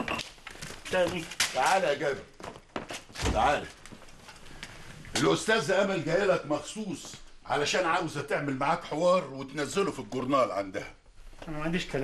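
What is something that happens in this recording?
An elderly man speaks loudly and angrily.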